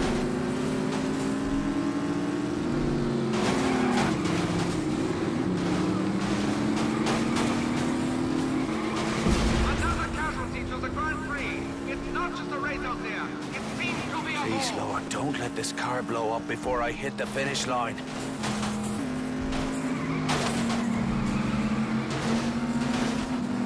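Racing car engines roar and whine steadily, rising and falling in pitch as the cars shift gears.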